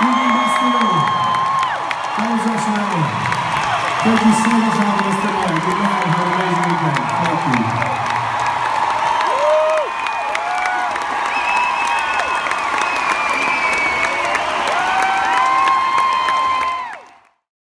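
A large crowd cheers and sings along in a vast echoing hall.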